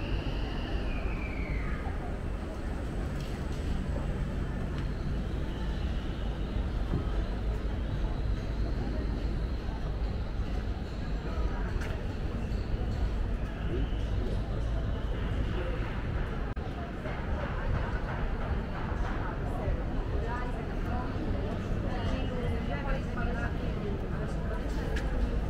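A crowd of pedestrians murmurs on a city street.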